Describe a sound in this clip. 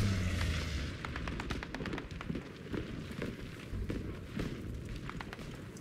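Small stones and debris patter down onto rock.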